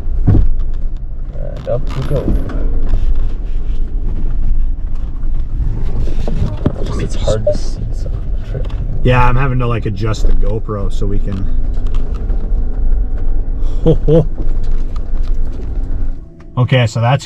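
A vehicle engine rumbles low as it crawls over rough ground.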